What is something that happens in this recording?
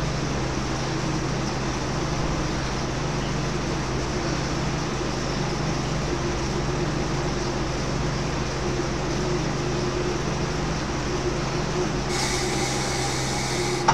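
A bike trainer whirs steadily under pedalling.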